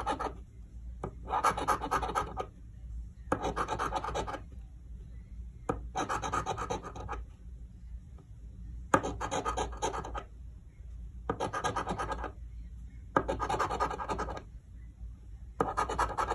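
A coin scratches rapidly across a scratch card in short bursts.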